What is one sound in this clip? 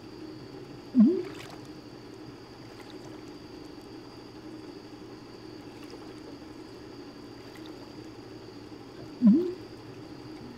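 A float bobs and plops softly in water.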